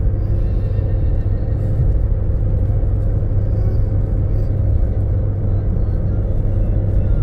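A car drives along an asphalt road, heard from inside with a low road rumble.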